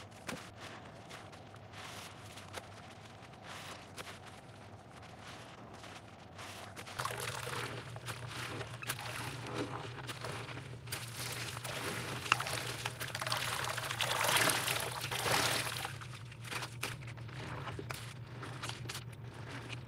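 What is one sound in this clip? Wet sponges squish and squelch in soapy water.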